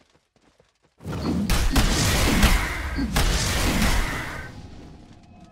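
Magic spells crackle and blast during a fight.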